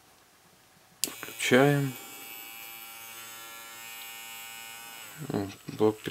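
A small handheld electric engraver's motor runs with a high whine.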